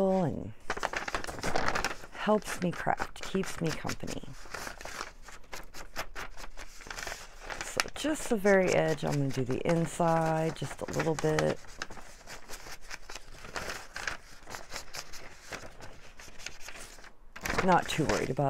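Sheets of paper rustle as they are handled.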